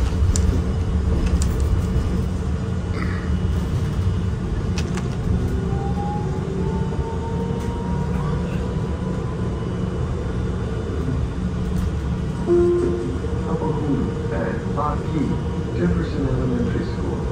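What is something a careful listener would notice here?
A bus engine rumbles low and steady while the bus drives.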